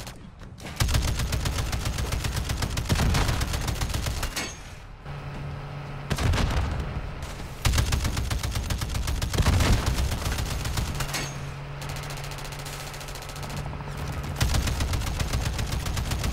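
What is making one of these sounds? A helicopter's rotor drones overhead.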